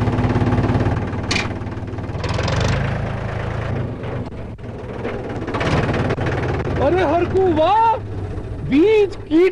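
A tractor engine rumbles and chugs close by.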